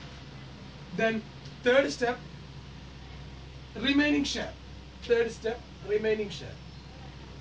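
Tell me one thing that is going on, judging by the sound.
A man speaks calmly in short phrases.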